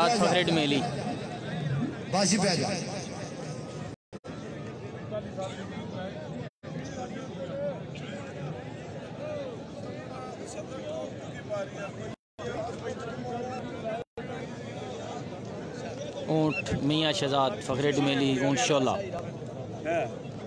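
A large outdoor crowd murmurs and chatters throughout.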